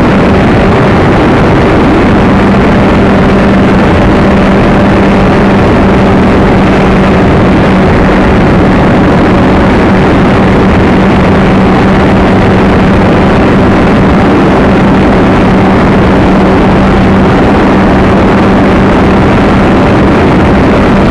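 Wind roars loudly and steadily past a small model plane in flight.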